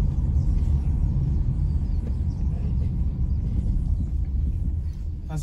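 A car engine rumbles low and steady from inside the vehicle.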